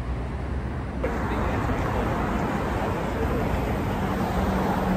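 Traffic hums along a nearby street.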